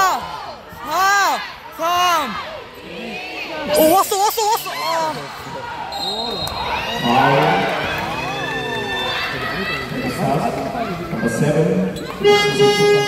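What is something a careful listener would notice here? A crowd murmurs in the stands.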